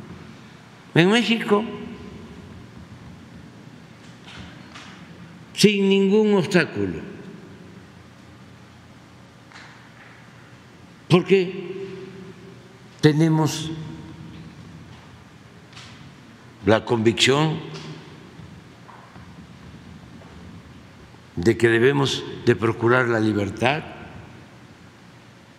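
An elderly man speaks slowly into a microphone in an echoing hall, with long pauses.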